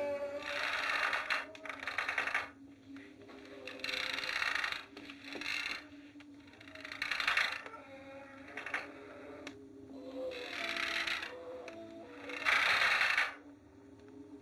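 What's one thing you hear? A wooden rocking chair creaks as it rocks on a wooden floor.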